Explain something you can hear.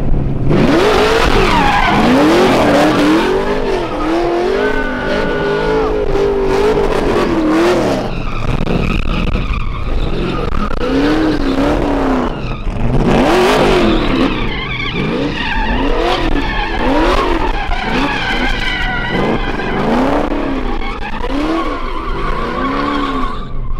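A race truck engine revs hard, its pitch rising and falling.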